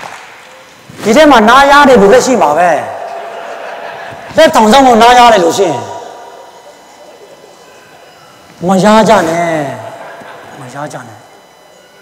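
A man shouts out loudly through a microphone in a large echoing hall.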